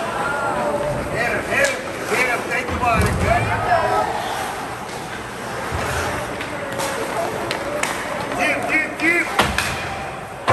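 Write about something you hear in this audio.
Spectators shout and cheer in a large echoing rink.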